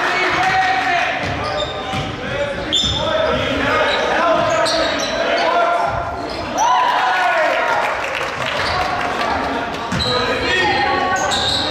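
Players and spectators shout and chatter in an echoing gym.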